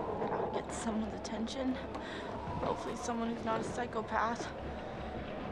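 A young woman speaks quietly.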